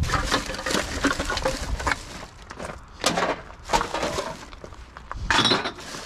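Glass bottles and cans clink together.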